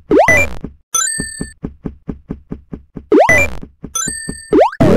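Bright game chimes ring briefly.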